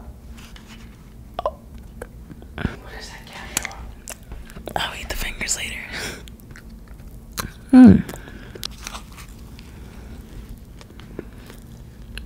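A young woman bites and chews soft food close to a microphone.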